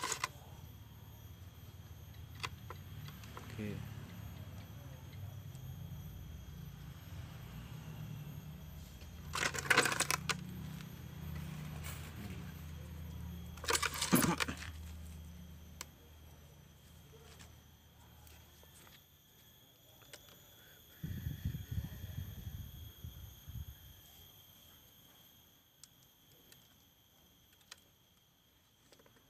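Leaves rustle and wire scrapes softly as hands bend branches of a small tree.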